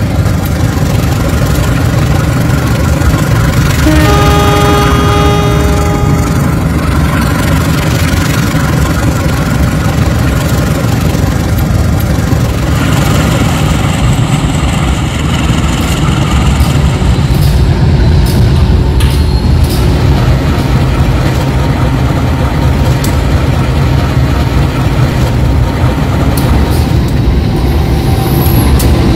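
A locomotive engine rumbles steadily.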